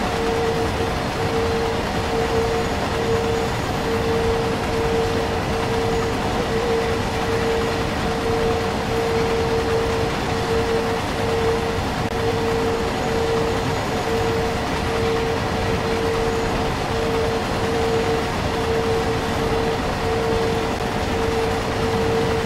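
An electric train motor hums with a steady whine.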